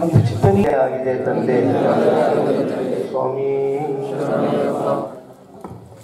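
A man chants prayers into a microphone, heard through a loudspeaker.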